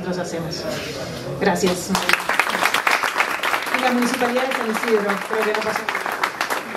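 A woman speaks over a loudspeaker.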